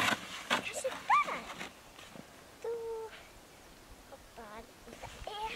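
A small child calls out in a high voice nearby.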